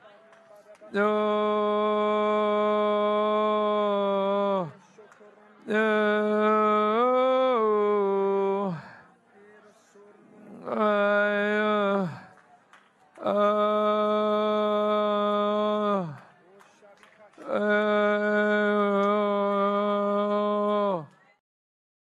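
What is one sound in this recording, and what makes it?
A man sings long, drawn-out notes through a microphone, pausing between them.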